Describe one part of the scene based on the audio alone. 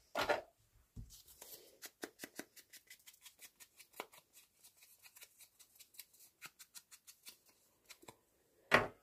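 A sponge dauber taps rapidly and repeatedly against a stamp.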